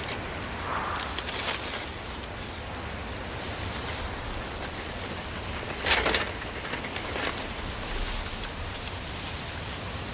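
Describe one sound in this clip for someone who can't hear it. A bicycle rolls along a paved road.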